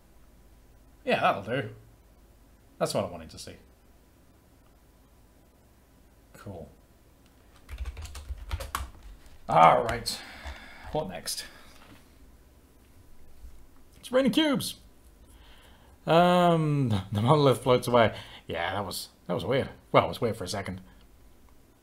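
A young man talks calmly and thoughtfully, close to a microphone, with pauses.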